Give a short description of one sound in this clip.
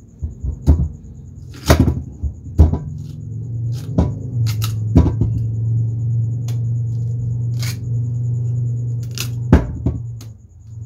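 A knife scrapes and chops at a root.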